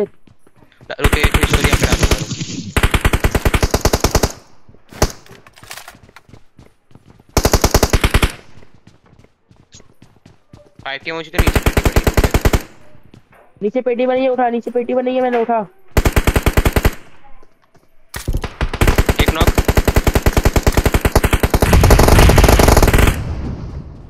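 A rifle fires in rapid bursts, close by.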